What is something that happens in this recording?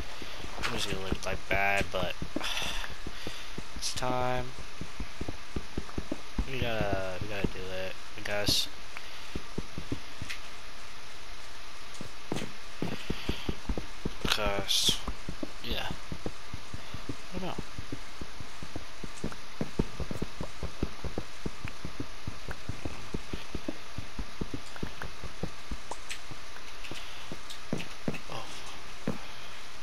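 A pickaxe taps and chips away at stone blocks in quick repeated knocks.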